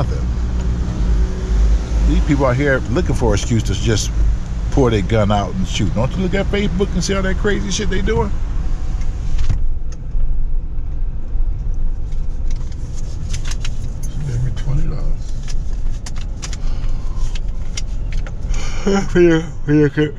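A car engine hums steadily with road noise while driving.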